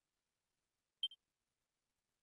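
A short game menu blip sounds.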